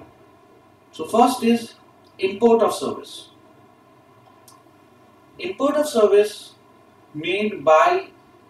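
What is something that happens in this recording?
A young man speaks calmly and clearly into a close microphone, pausing between phrases.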